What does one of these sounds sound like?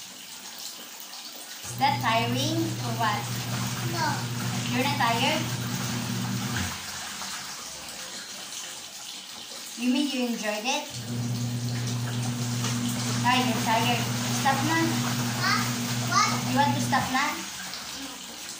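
Water sloshes and splashes in a tub.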